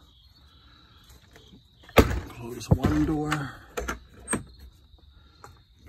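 A wooden door latch clicks and rattles.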